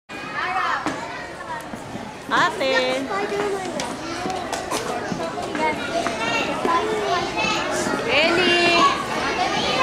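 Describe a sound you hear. Young children chatter and shout excitedly nearby.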